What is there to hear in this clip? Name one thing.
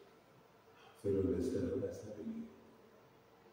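A man speaks briefly.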